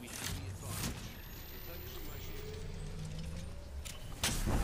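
A charging device hums with a slowly rising whine.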